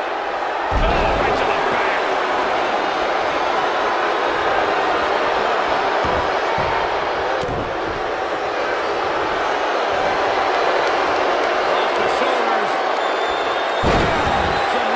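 Bodies slam heavily onto the ring mat with deep thuds.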